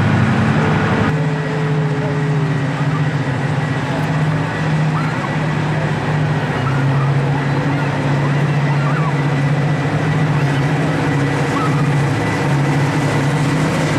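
A train rolls slowly along the rails toward the listener.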